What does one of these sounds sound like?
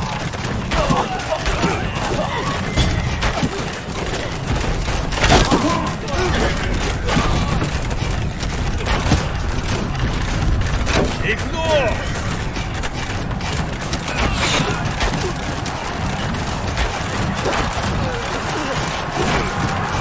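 A crowd of soldiers shouts and yells amid the fighting.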